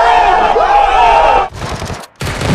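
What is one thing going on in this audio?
A crowd of young people cheers and shouts.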